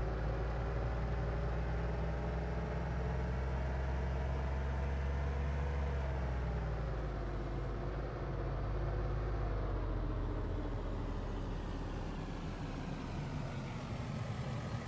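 A car engine hums steadily, rising and falling as the car speeds up and slows down.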